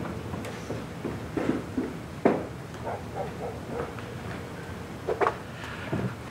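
Footsteps come down a wooden staircase.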